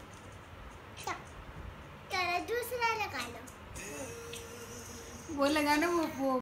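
A young boy talks and laughs excitedly up close.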